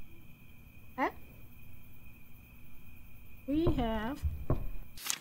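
A young woman speaks briefly into a microphone.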